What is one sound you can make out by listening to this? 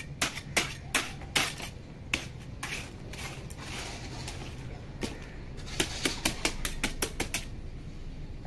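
A bare hand pats and smooths wet concrete.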